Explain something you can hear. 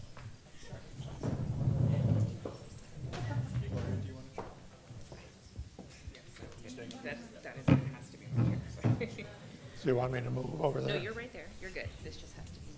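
Several men and women talk together at a distance in a large echoing hall.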